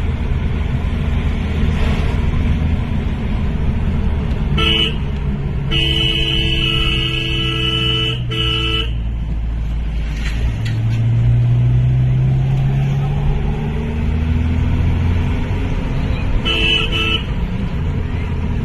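A vehicle engine rumbles steadily as it drives along a road.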